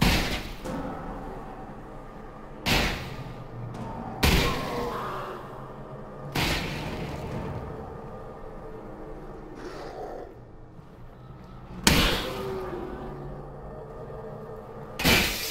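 Heavy gunshots bang out now and then, echoing.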